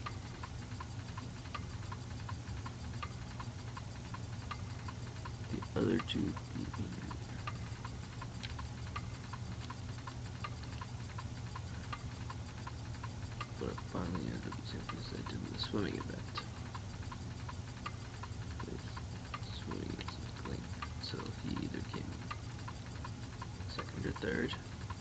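Short electronic blips tick rapidly as game text scrolls.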